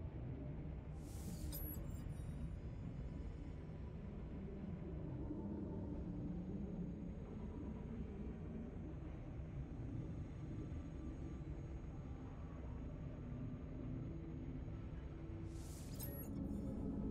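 A soft whoosh sweeps past briefly.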